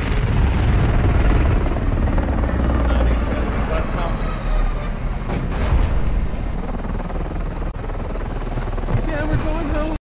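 A helicopter's rotors roar and thump loudly close by.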